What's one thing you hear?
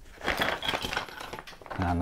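Plastic pieces clatter onto a mat.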